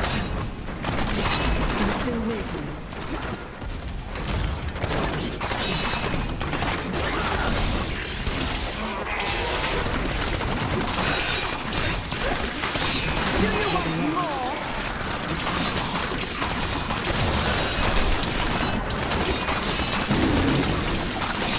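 Spells crackle and explode rapidly in a game battle.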